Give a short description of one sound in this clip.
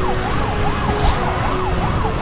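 A car slams into another car with a sharp thud.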